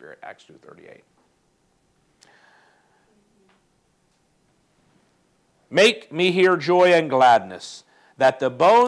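A middle-aged man speaks calmly and close to a lapel microphone.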